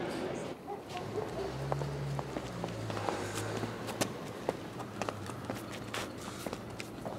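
Footsteps tap on stone under an echoing archway.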